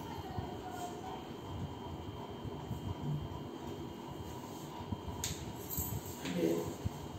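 An elderly man speaks in a low voice nearby.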